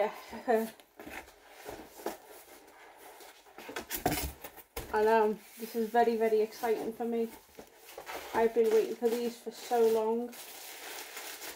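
Cardboard rustles and thumps as a box is opened.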